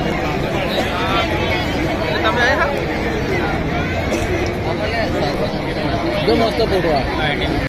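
A crowd of men, women and children chatters all around outdoors.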